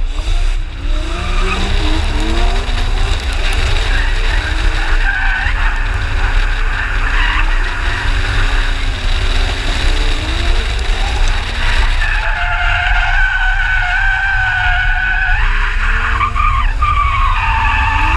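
Tyres screech loudly on tarmac.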